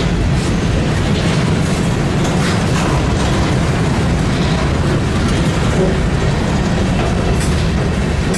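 A freight train rumbles steadily past on the tracks.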